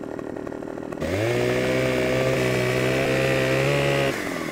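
A chainsaw engine revs up to a loud, steady whine.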